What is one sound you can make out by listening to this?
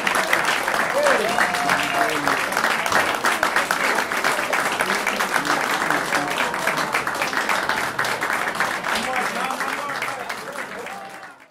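People in a crowd whoop and cheer.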